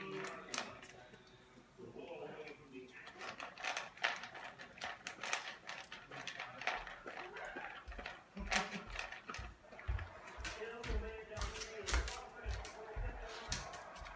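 A dog crunches dry food from a bowl.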